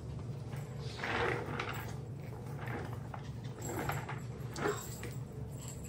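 Small puppies yip and squeak while playing.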